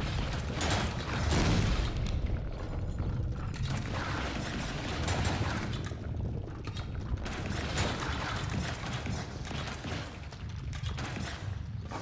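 Laser shots zap and crackle in quick bursts.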